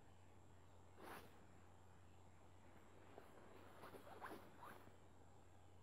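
A small metal tool clicks and scrapes faintly against tiny watch parts.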